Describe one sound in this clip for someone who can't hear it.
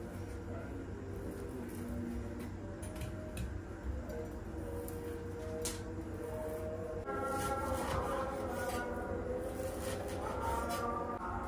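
A knife taps and cuts on a wooden chopping board.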